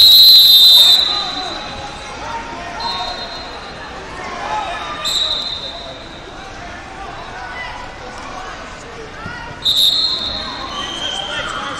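A referee's whistle blows in short sharp blasts.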